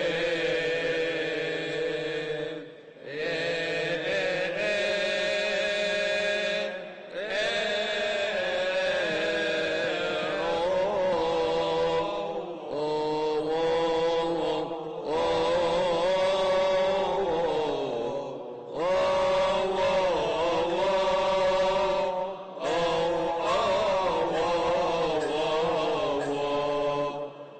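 A choir of men chants loudly through microphones in an echoing hall.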